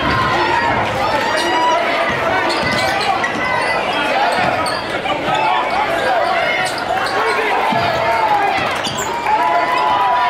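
A crowd cheers and shouts loudly in a large echoing gym.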